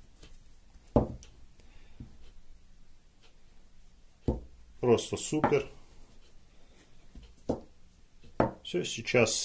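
Plastic pipes knock and clatter against a table.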